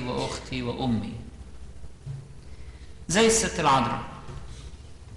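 An elderly man chants into a microphone in a large echoing hall.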